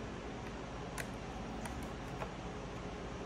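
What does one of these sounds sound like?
A plastic panel clicks and knocks into place.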